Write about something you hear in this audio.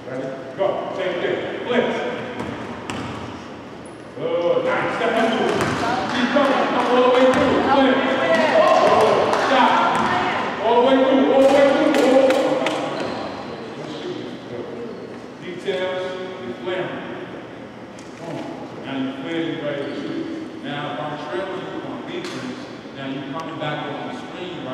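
Basketballs bounce on a hard floor, echoing in a large hall.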